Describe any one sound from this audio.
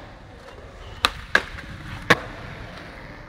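Skateboard wheels clack sharply on the floor.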